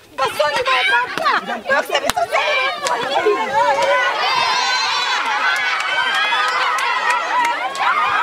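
A crowd of people shout and clamour outdoors.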